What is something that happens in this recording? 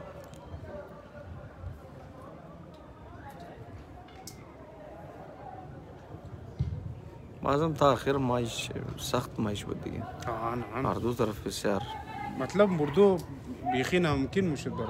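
A distant crowd murmurs outdoors.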